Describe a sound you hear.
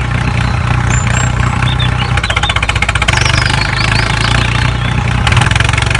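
A small toy tractor motor whirs steadily.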